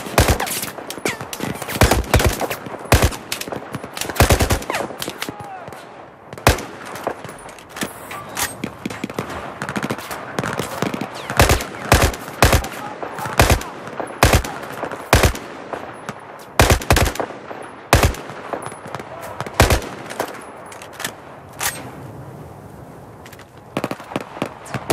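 A rifle fires in sharp bursts of gunshots.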